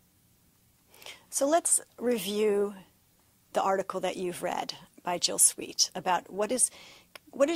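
A middle-aged woman speaks calmly and clearly into a close microphone.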